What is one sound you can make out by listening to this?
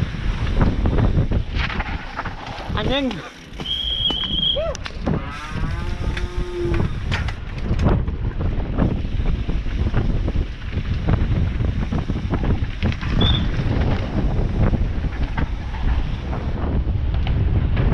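Wind rushes past a helmet.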